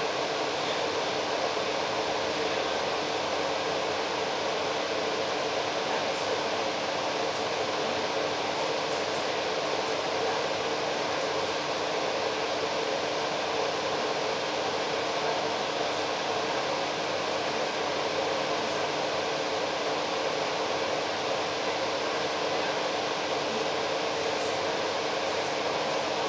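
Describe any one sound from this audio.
Traffic rumbles steadily along a busy city street.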